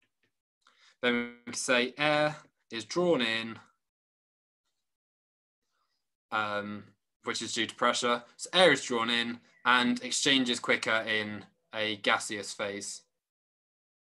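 A man speaks calmly into a microphone, heard as if over an online call.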